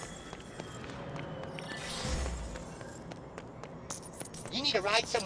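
Light footsteps patter quickly on a stone floor.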